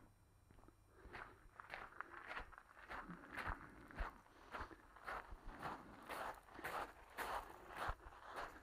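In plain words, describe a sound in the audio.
Footsteps crunch steadily on gravel, close by.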